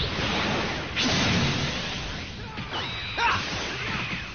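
A loud energy blast bursts and roars.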